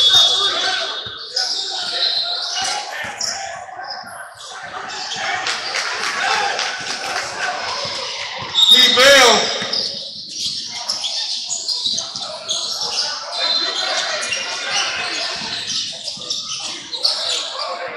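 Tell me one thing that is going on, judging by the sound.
A crowd of spectators chatters and calls out in the echoing hall.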